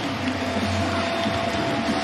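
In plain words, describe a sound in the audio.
Two players slap hands together.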